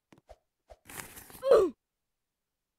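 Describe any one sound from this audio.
A short whooshing game sound effect plays.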